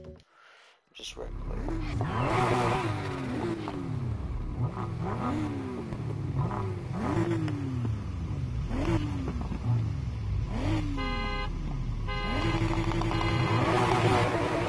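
A car engine revs up and down repeatedly as gears shift.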